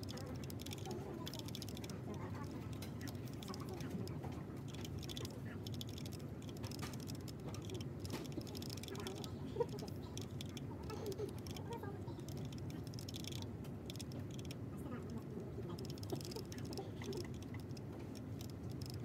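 Keys on a mechanical keyboard click and clack rapidly in steady typing.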